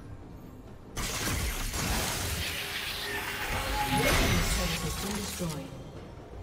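A turret crumbles with a loud explosion.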